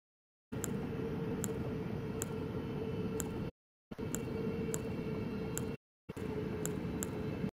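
Short menu clicks tick every second or so.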